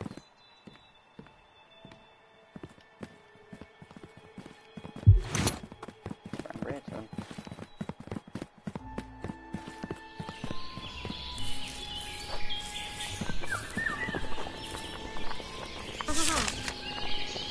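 Footsteps patter steadily as a game character runs.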